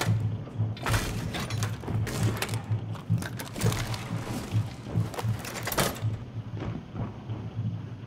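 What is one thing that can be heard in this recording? A heavy metal shield clanks and clicks as it is unfolded and set down.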